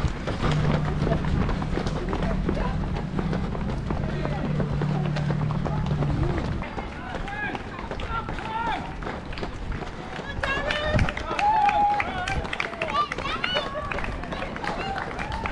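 Footsteps of many runners patter on the road.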